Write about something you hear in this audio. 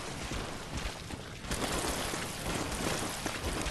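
A large beast growls and snarls close by.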